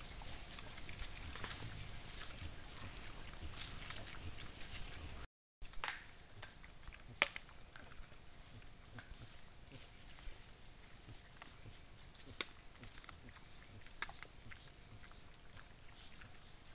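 Hooves and snouts rustle and crunch through dry leaves on the ground.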